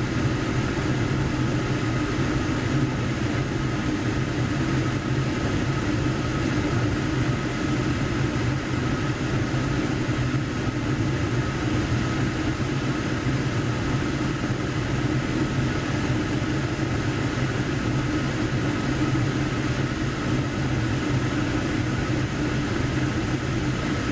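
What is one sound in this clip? A gas furnace burner roars steadily with a low hum.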